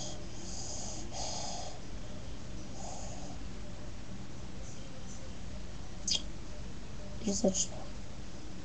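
A young boy speaks quietly and briefly, close to the microphone.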